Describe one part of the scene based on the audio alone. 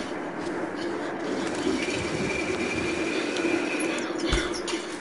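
A metal pulley whirs along a zip line.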